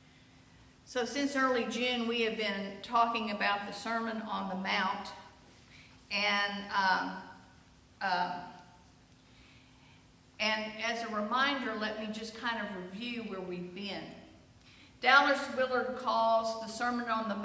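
A woman speaks clearly into a microphone, reading out in a reverberant hall.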